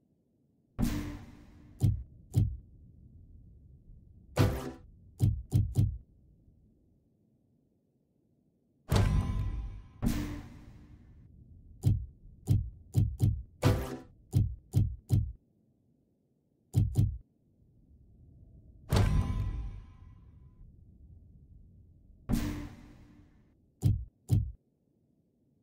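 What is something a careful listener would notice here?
Game menu sounds click and chime as selections are made.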